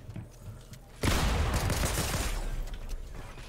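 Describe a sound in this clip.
A burst of electric crackling erupts.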